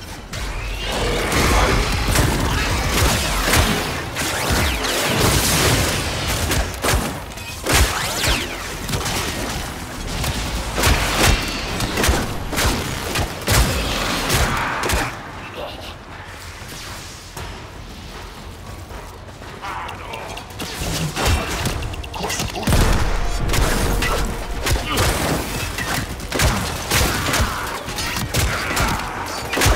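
Gunfire and blasts crackle and boom in quick bursts.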